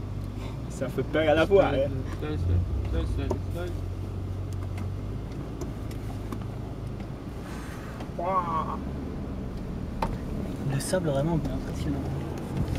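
A man speaks with animation close by inside a car.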